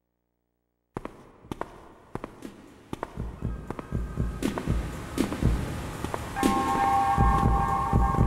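Footsteps tap steadily along a hard floor.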